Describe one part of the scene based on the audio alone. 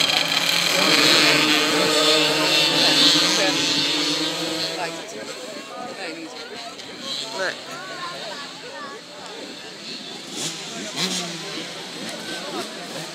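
Several motorbike engines roar loudly as they pull away, then fade into the distance.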